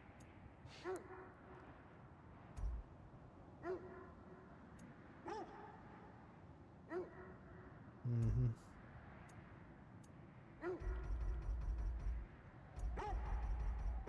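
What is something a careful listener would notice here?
Short soft menu chimes sound each time a selection changes.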